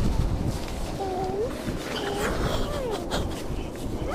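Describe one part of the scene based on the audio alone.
A young girl talks.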